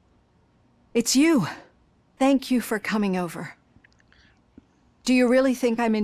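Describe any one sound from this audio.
A middle-aged woman speaks calmly and warmly.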